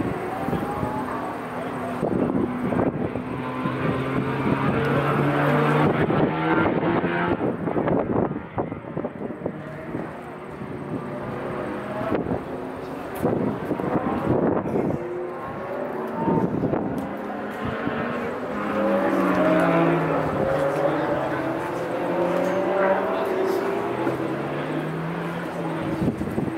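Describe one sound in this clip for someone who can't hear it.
Racing kart engines whine and rev as karts speed past on a track.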